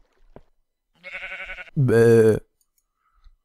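A cat meows loudly up close.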